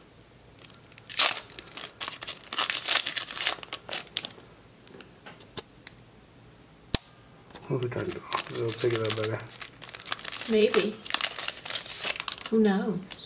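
A foil card pack crinkles and tears as hands open it.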